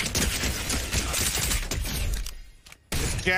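Gunfire rattles rapidly.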